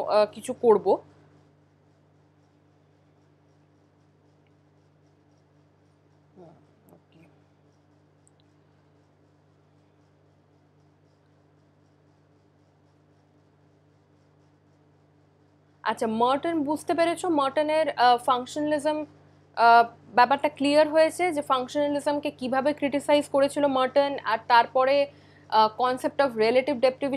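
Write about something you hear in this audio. A young woman speaks calmly and steadily into a close microphone.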